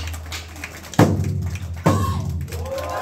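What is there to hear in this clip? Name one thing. Two large drums are struck together in loud, booming beats.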